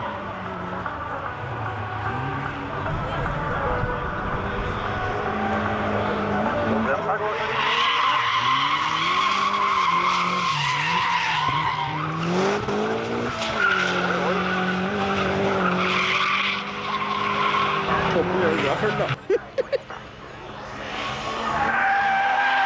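A car engine revs hard, rising and falling in pitch.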